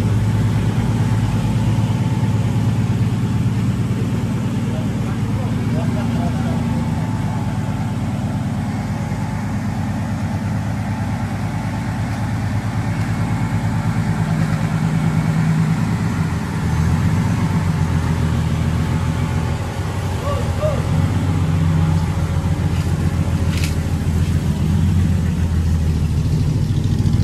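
A truck engine idles with a deep, rumbling throb close by.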